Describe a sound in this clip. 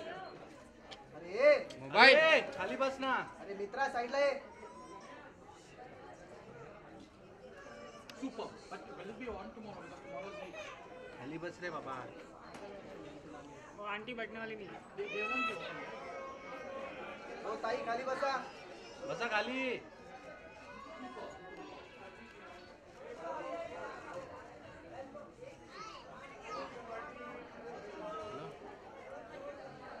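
Children and women chatter and call out in a noisy crowd.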